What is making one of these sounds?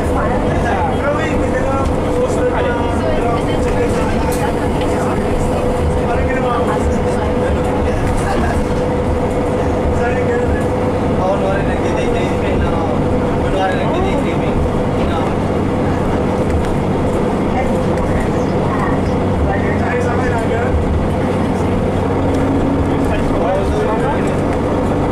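A bus engine hums steadily with a low rumble as the bus drives along.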